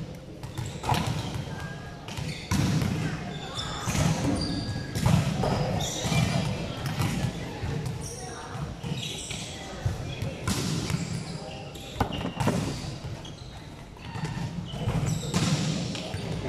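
A volleyball is struck with sharp smacks in a large echoing hall.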